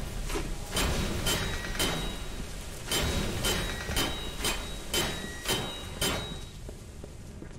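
Metal clangs with sharp, ringing hits.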